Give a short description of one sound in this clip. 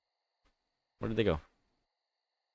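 A young man speaks briefly and close into a microphone.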